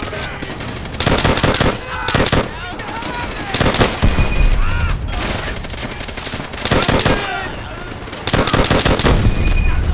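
A rifle fires bursts of rapid, loud shots close by.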